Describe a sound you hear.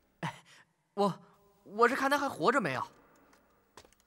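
A man speaks briefly and close by.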